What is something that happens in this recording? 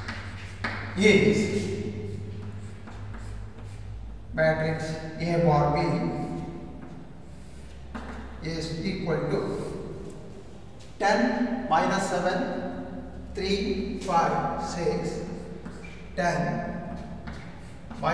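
An elderly man speaks calmly and slowly through a microphone.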